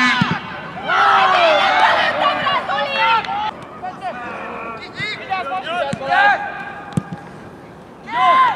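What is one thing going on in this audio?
Several men shout and call out across an open outdoor pitch.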